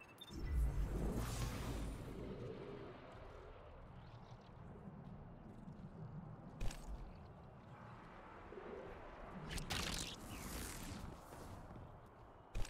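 Glass shatters loudly into crashing shards.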